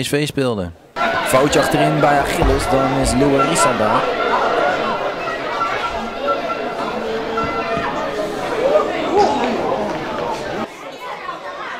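Women players call out to each other across an open pitch.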